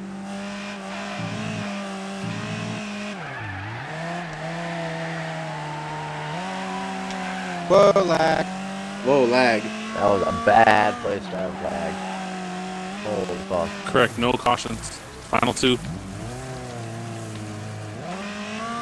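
A race car engine drones and revs steadily.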